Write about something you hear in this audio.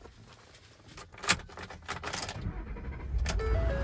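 A truck engine cranks and starts.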